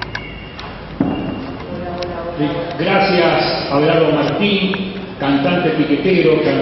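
A woman speaks calmly into a microphone, heard through loudspeakers in an echoing hall.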